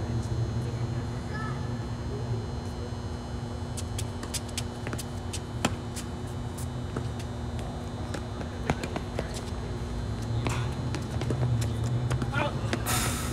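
Tennis balls are struck with sharp pops by rackets, outdoors.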